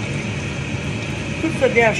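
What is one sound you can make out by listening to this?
Liquid pours into a metal pot.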